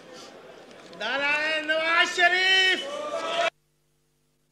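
Men chant and shout loudly in unison in a large hall.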